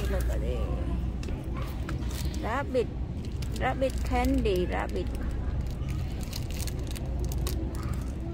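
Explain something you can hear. A plastic blister pack crinkles as a hand handles it.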